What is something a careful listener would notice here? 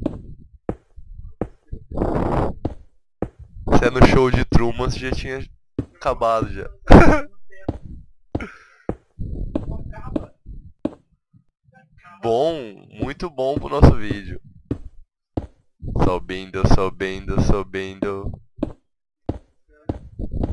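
Stone blocks are set down with soft, dull thuds.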